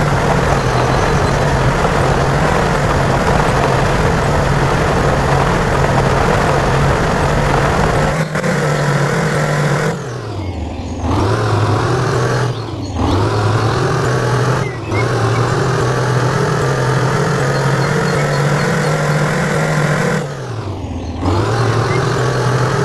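A truck engine rumbles steadily, its pitch dipping and rising as it changes speed.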